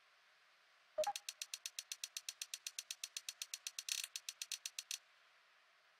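A game countdown ticks rapidly.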